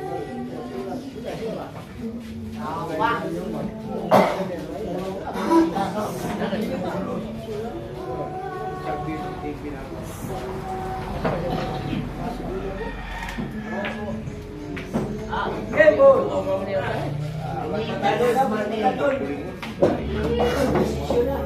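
Billiard balls knock together and roll on a table.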